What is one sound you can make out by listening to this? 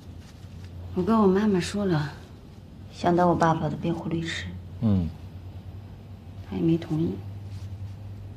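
A woman speaks softly nearby.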